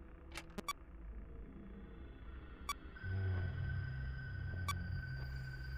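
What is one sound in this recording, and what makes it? Short electronic beeps sound from a computer menu.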